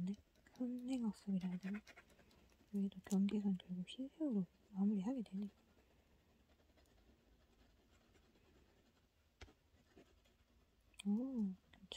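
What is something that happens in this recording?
Soft pastel scrapes and rubs across paper.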